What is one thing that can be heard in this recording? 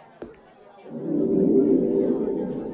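A magic orb hums with a loud whoosh.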